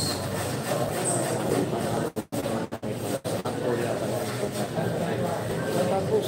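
A crowd of young men murmurs and chatters nearby.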